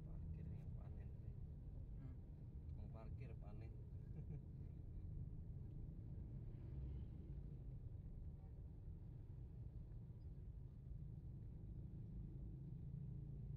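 Motorbike engines and traffic rumble steadily close by.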